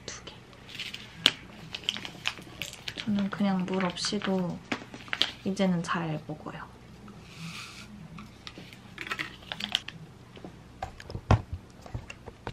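Paper sachets crinkle and tear in someone's hands.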